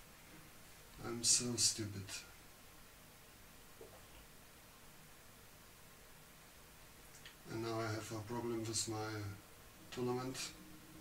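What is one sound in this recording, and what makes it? An elderly man commentates calmly and close into a microphone.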